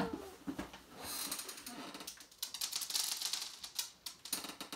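A paper bag rustles and crinkles.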